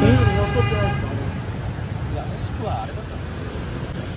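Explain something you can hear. Motorbikes ride past close by.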